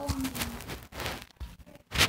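Blocks crunch as they are broken.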